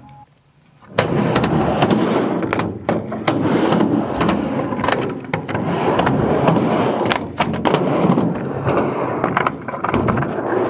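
Skateboard wheels roll and rumble on a wooden ramp.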